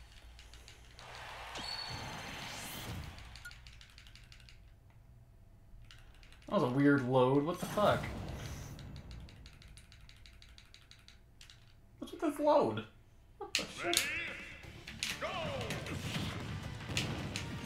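Video game music and fight effects play.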